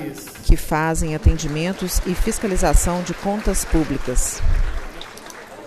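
A large crowd sings together loudly in a large echoing hall.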